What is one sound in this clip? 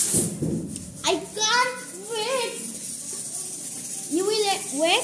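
A young girl speaks in a high, lively voice close by.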